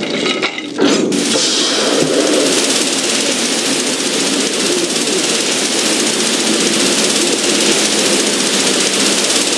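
Water sprays from a fire hose with a steady rushing hiss.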